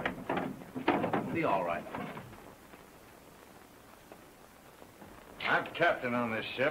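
A man talks in short bursts.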